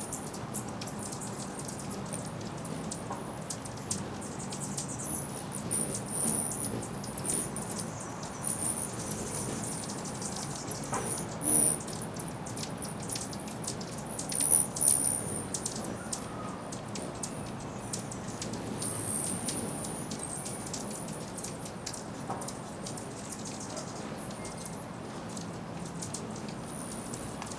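Hummingbird wings hum as the birds hover.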